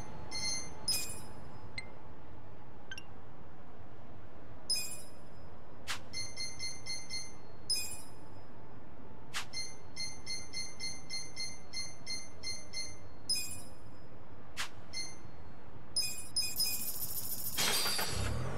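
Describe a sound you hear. Menu selection sounds beep and click quickly.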